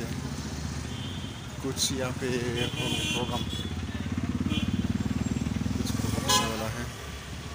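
A car engine idles close by.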